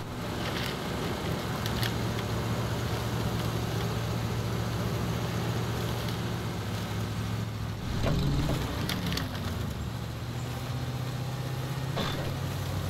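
Mud squelches under the truck's tyres.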